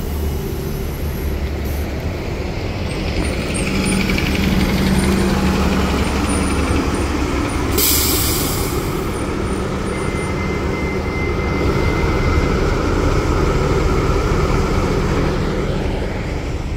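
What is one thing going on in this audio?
A bus engine rumbles deeply as the bus pulls away.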